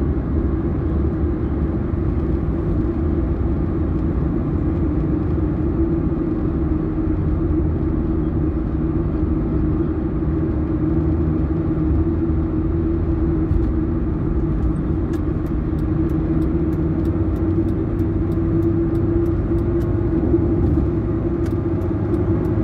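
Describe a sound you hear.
A car's engine hums steadily as it drives along a highway.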